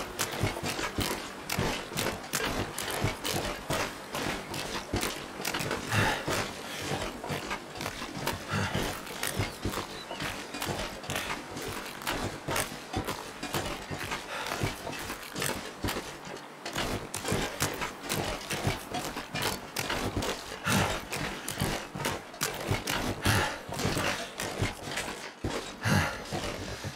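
Footsteps crunch on snow and ice.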